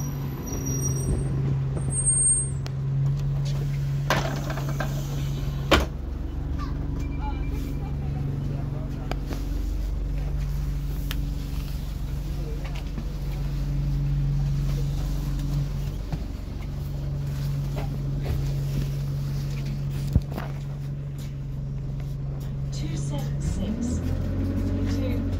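A bus rattles and clunks as it moves.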